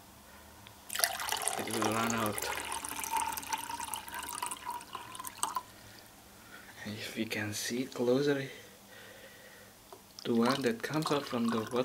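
Water pours from a kettle into a plastic cup.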